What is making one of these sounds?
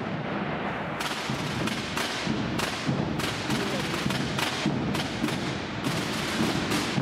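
Drumsticks tap sharply on drums.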